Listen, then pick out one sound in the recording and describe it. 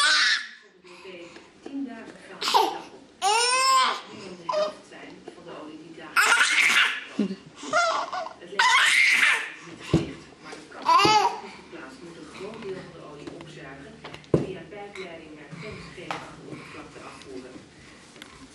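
A baby coos and squeals happily close by.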